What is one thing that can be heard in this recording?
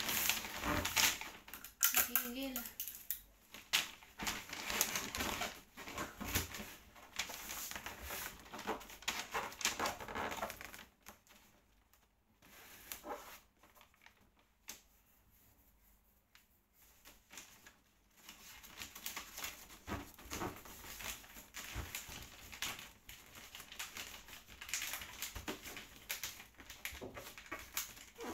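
Wrapping paper crinkles and rustles.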